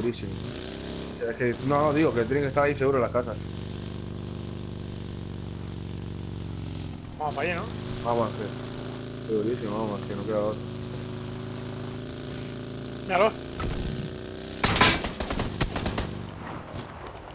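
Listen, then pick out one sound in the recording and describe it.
A small buggy engine drones and revs steadily.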